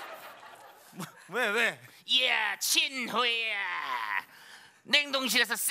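A man shouts in a high, exaggerated voice.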